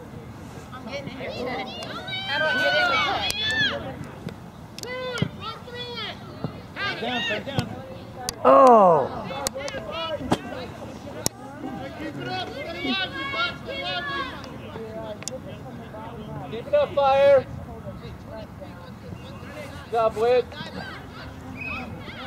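Adult spectators shout and cheer from a distance across an open field.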